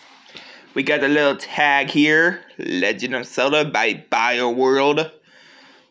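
Soft fabric rustles as hands handle a knitted hat.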